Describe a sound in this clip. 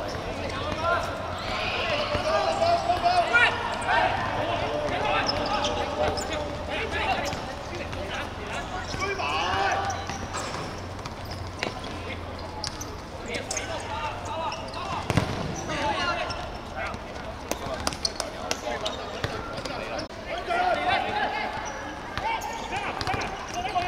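Young men shout and call out to each other across an open outdoor pitch.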